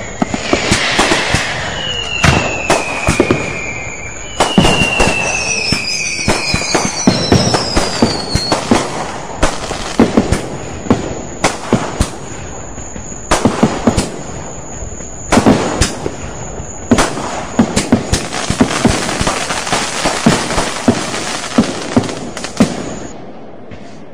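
Fireworks crackle and fizz in a steady rush.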